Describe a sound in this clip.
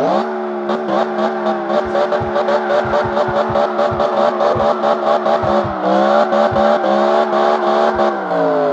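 A car engine roars and revs as it speeds up.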